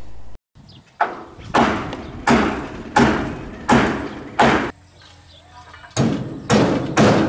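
A hammer bangs nails into wood in steady, ringing blows.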